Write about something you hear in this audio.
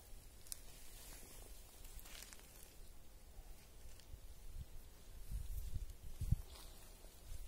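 A metal bar thumps against the ground.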